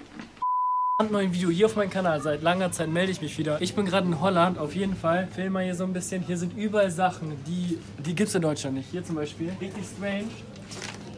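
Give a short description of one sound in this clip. A young man talks with animation in an indoor space.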